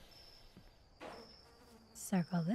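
A young woman speaks into a microphone close by.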